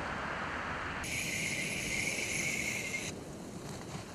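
A kettle hisses as it steams.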